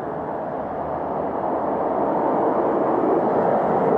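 A truck drives past close by, growing louder.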